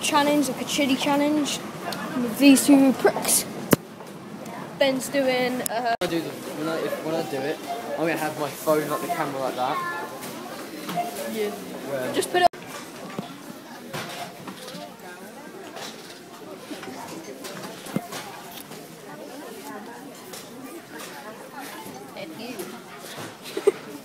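A crowd murmurs in the background of a busy indoor space.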